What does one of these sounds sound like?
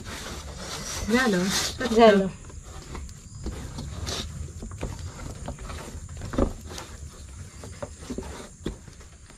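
Hands knead soft dough with a soft squishing.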